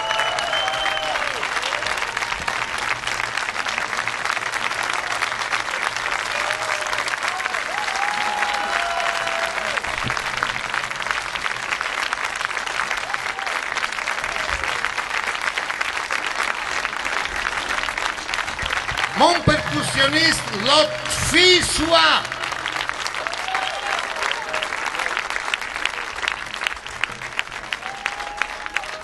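A large crowd applauds and cheers steadily.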